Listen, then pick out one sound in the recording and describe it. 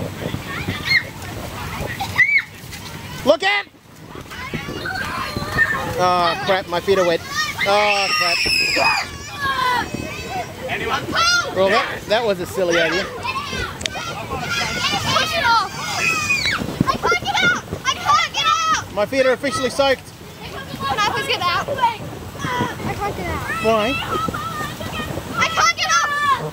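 Children shout and squeal excitedly close by, outdoors.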